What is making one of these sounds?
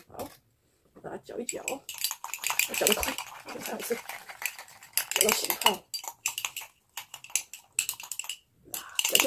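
Chopsticks scrape and clink against a mug.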